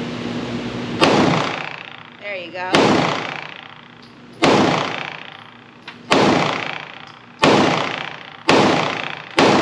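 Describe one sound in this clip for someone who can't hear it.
Gunshots crack loudly, one after another, ringing in an enclosed range.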